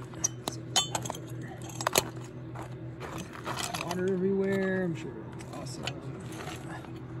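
Metal pieces clank and scrape against a concrete floor.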